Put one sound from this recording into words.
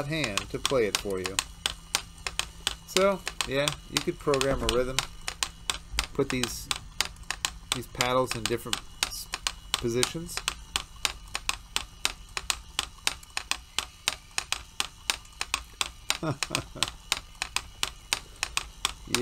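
A robotic hand's motors whir and click rapidly as its fingers move.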